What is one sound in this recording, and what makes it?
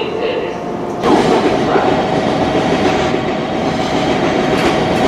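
A diesel train rumbles into the station, its engine droning steadily.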